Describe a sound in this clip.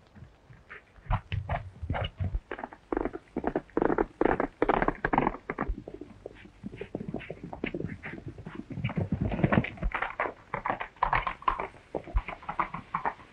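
Horse hooves gallop over dry ground.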